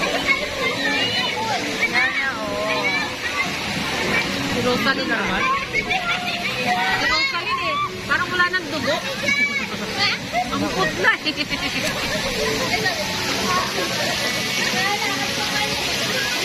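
Water splashes and laps around swimmers.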